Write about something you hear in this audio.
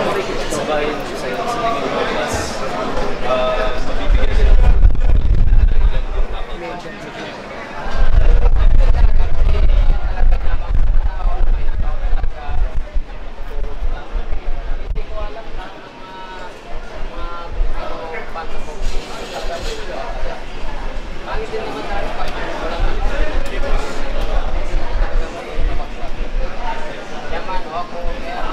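Many people chatter nearby in an indoor crowd.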